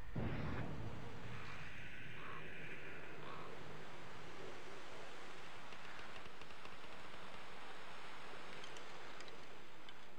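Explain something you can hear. A light wind blows through grass outdoors.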